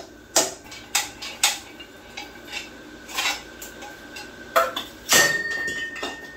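A hammer strikes a metal engine block with sharp clanks.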